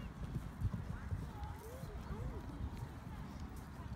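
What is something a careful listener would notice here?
A horse canters with dull hoofbeats on soft sand.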